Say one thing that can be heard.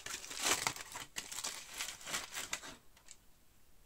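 Aluminium foil crinkles and rustles as hands unwrap it.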